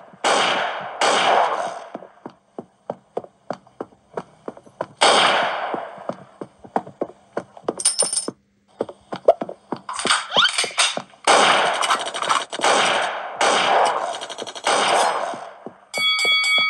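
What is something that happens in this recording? Video game gunshots fire in rapid bursts.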